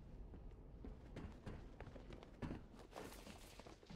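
Footsteps run on a hard floor.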